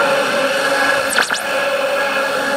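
A radio whistles with a sweeping tone as it drifts between stations.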